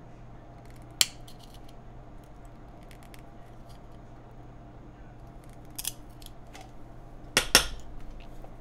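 A plastic keyboard part clicks and snaps in a pair of hands.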